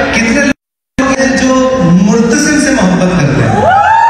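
A man sings into a microphone over loudspeakers in a large, echoing hall.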